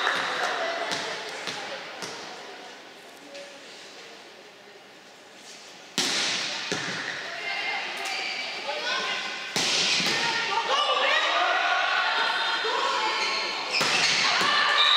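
A volleyball is struck hard with sharp smacks echoing in a large hall.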